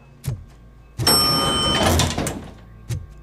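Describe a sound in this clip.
An elevator chime dings.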